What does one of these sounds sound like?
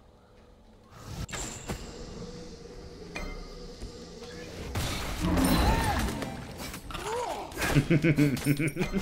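Magic blasts and weapon clashes burst out in a fight.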